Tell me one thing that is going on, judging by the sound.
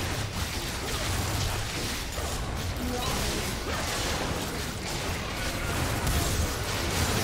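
Spell blasts and hits burst and crackle in a video game fight.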